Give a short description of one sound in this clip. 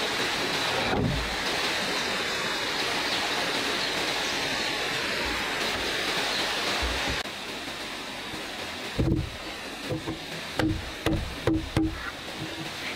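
A heavy wooden board bumps and knocks against wood.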